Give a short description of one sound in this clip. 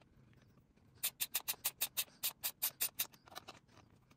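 A ratchet wrench clicks rapidly as a bolt is turned.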